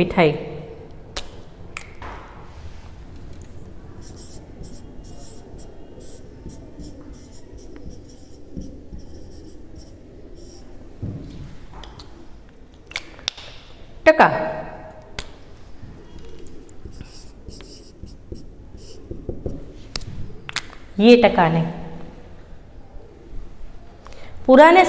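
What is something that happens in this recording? A young woman speaks in short bursts, close by.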